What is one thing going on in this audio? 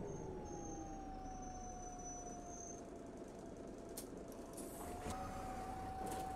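A bus engine hums steadily, its pitch slowly dropping and then rising.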